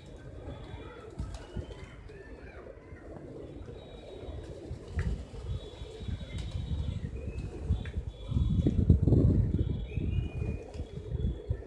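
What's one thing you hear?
Pigeon wings flap and flutter as birds take off.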